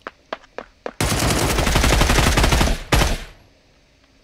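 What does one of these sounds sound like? Rapid gunfire blasts loudly.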